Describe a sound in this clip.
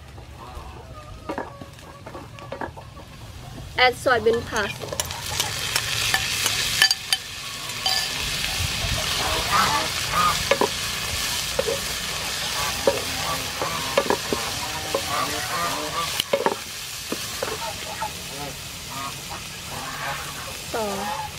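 A wooden spatula scrapes and stirs against a pan.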